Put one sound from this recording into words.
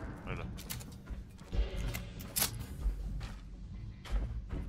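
A gun reloads with metallic clicks.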